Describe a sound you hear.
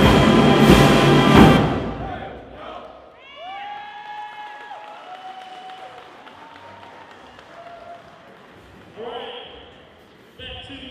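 A brass band plays loudly in a large echoing hall.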